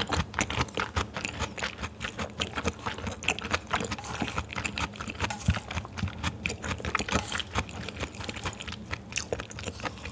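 Chopsticks stir and lift raw beef on a plate.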